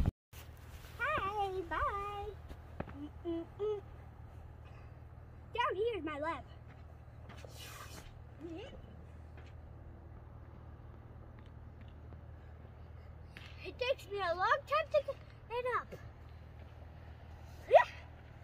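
A young child talks excitedly nearby.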